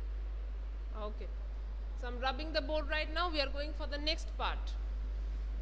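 A woman speaks clearly and calmly.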